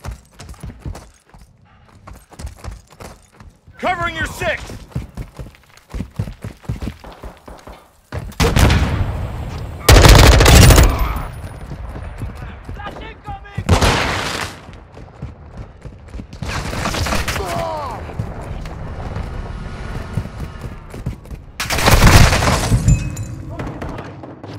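Gunfire rattles in quick bursts, with loud blasts now and then.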